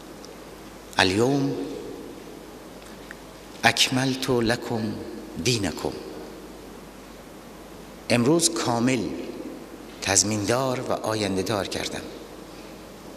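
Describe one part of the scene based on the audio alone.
A middle-aged man speaks forcefully into a microphone, in short bursts with pauses.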